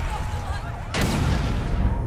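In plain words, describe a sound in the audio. A loud blast booms.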